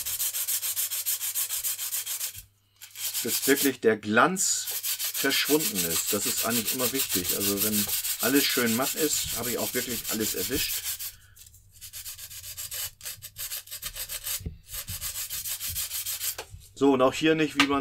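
Sandpaper rasps back and forth rapidly against a wooden stick.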